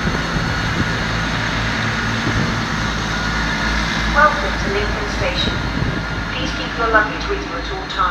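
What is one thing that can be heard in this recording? Train wheels clatter over the rail joints as a train approaches.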